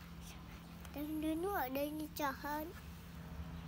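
A young child speaks in a high voice close by.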